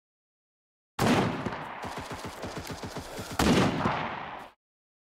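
A rifle fires in quick shots.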